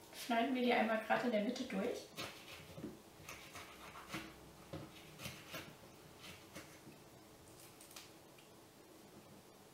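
A lemon is squeezed on a hand juicer, scraping and squishing.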